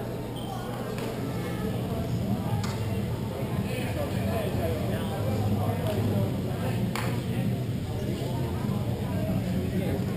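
Young players shout and call out to each other, echoing in a large hall.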